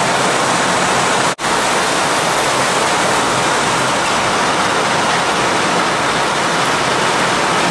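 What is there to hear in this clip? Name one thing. Steel conveyor chains clatter, moving a heavy log.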